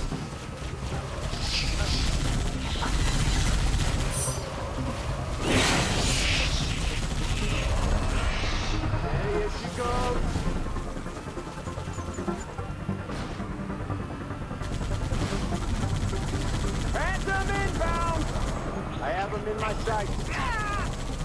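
A vehicle's engine rumbles steadily.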